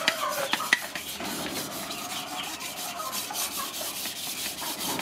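A knife chops and scrapes on a wooden board.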